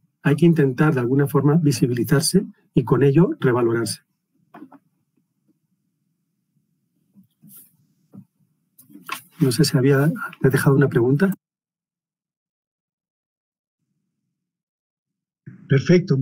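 A middle-aged man speaks calmly through an online call, pausing now and then.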